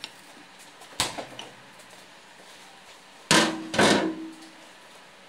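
An ice cream scoop knocks against a ceramic dish.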